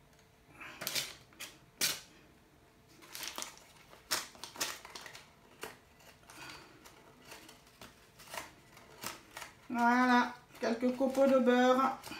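A paper butter wrapper rustles and crinkles.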